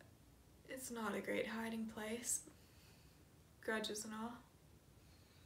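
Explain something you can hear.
A young woman speaks calmly and softly close by.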